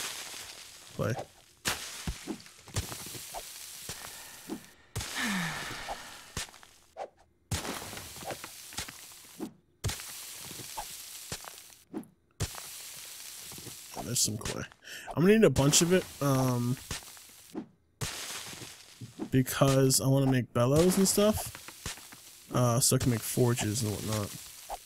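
A shovel digs into dirt with repeated dull thuds.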